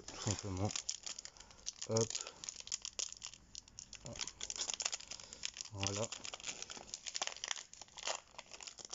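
Foil wrappers crinkle and rustle between gloved hands.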